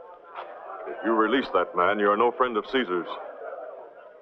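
A man speaks firmly and loudly, close by.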